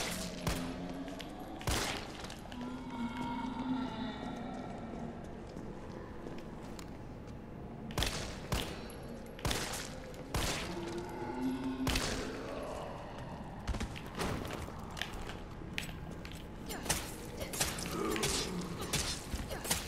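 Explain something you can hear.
A creature groans and snarls hoarsely.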